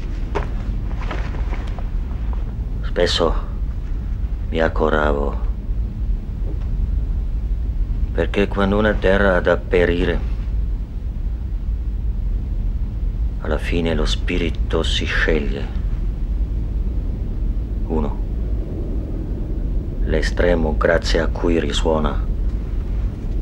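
A man speaks calmly and slowly close by, with long pauses.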